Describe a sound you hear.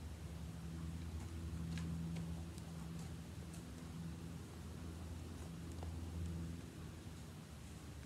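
A horse's hooves thud softly on grassy ground as it walks.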